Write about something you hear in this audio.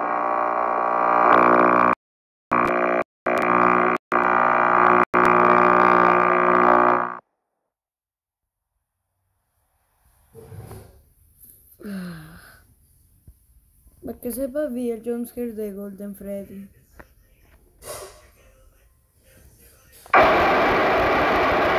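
Loud electronic static hisses and buzzes.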